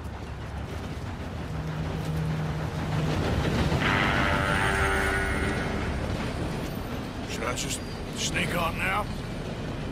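A steam train rumbles and hisses as it pulls in.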